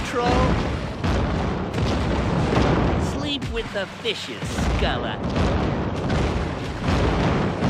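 A ship's cannon fires with heavy booms.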